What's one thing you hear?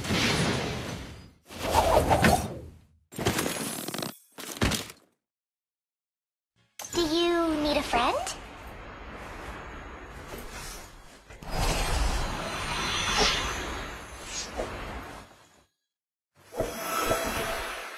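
Magical whooshing and chiming effects sweep by in short bursts.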